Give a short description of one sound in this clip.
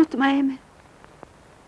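A woman moans softly, close by.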